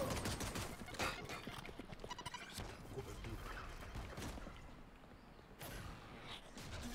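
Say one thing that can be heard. Game ability effects whoosh and crackle.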